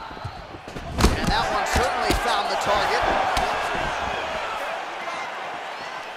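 A crowd in a large arena cheers and roars.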